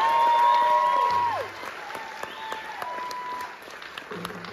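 A keyboard plays sustained notes that slide downward.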